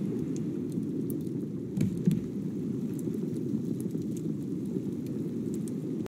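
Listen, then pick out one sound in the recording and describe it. Waves wash steadily around a wooden raft at sea.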